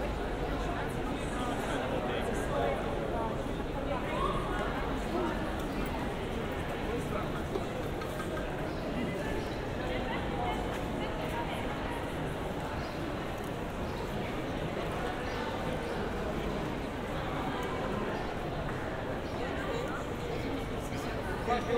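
Many people chatter in a busy crowd outdoors.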